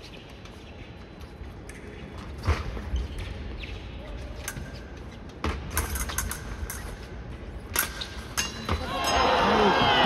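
Fencers' feet stamp and squeak on the strip.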